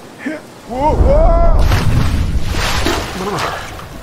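Water splashes loudly as a body plunges in.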